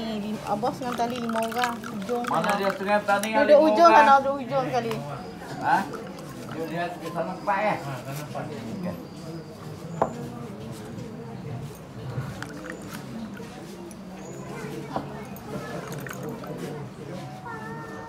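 A plastic spoon stirs and taps in a glass of water.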